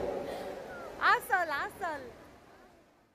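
Young girls shout and squeal excitedly nearby.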